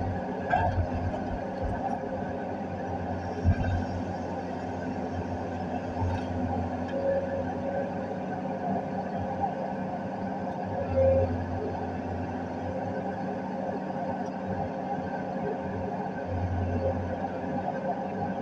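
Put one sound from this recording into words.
Hydraulics whine and strain as an excavator's arm moves.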